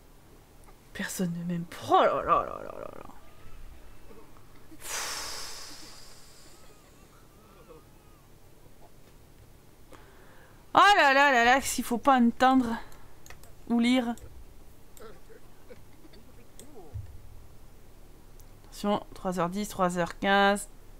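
A young woman talks into a microphone with animation, in short bursts.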